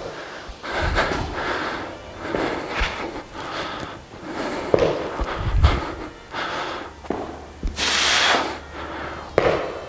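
Footsteps thud on a rubber floor.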